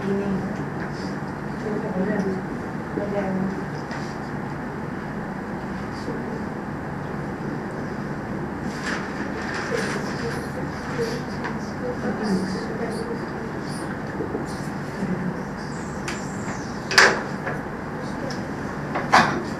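A man speaks calmly nearby, with a slight room echo.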